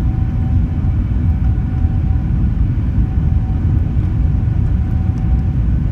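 A jet engine roars steadily as an airliner speeds along the runway.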